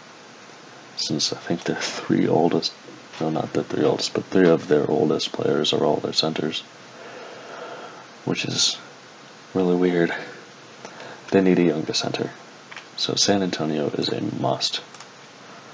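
A young man talks calmly and closely into a microphone.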